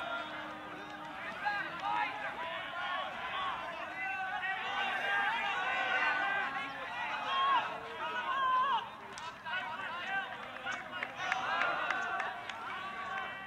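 Young women call out and shout to each other across an open field in the distance.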